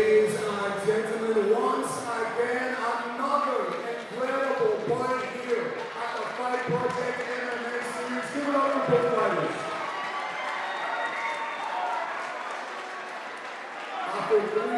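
A man announces loudly and drawn-out over a loudspeaker in a large echoing hall.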